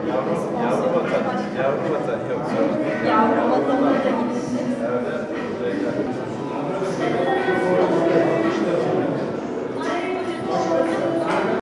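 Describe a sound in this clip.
A man speaks calmly close to a microphone.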